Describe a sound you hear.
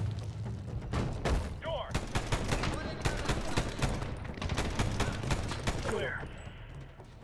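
A rifle fires rapid bursts of shots nearby.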